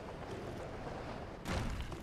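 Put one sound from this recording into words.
A heavy thud sounds as something lands hard on a car roof.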